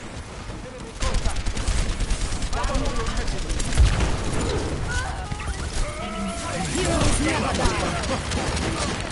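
Gunfire and blasts crackle loudly in a game battle.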